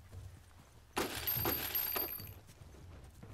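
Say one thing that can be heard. Blows thud as a fighter strikes a man on the ground.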